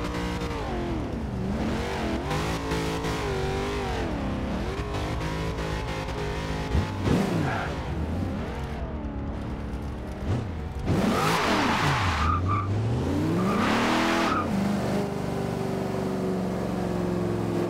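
A car engine revs up and down throughout.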